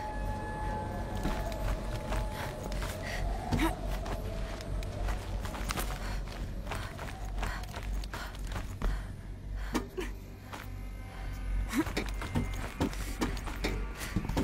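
Hands and feet clank on metal rungs.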